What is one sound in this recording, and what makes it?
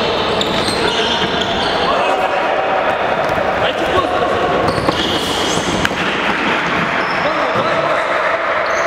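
Players' shoes squeak on a wooden floor in a large echoing hall.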